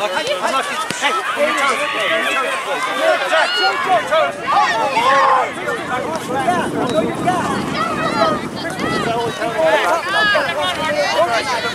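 Many young voices shout and call out outdoors across an open field.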